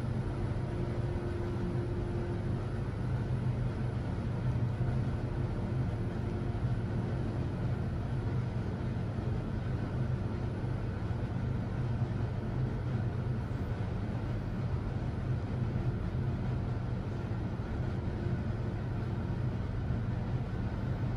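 An elevator car hums steadily as it travels down.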